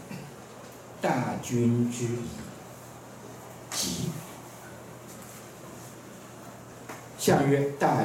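An elderly man speaks slowly through a microphone, in a room with some echo.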